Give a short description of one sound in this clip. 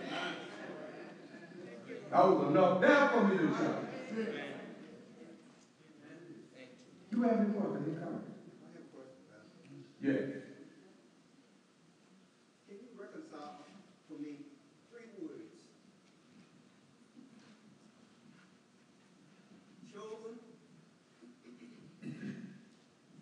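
An elderly man speaks calmly in pauses, close by.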